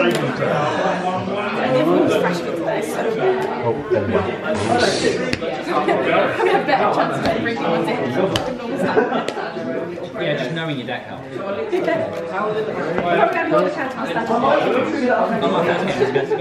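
Playing cards are shuffled with soft, quick rustling.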